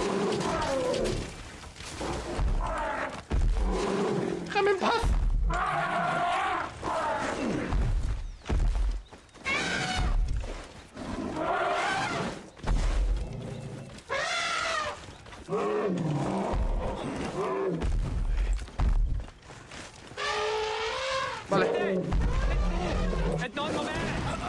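Heavy footsteps of a large animal thud on the ground.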